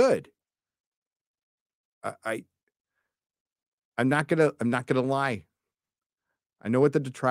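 A middle-aged man talks with animation close to a microphone, in short bursts with pauses.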